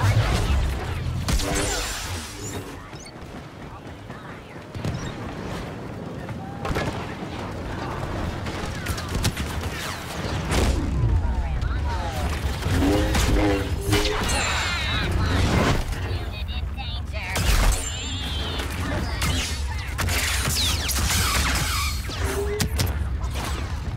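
A lightsaber hums and swings with buzzing whooshes.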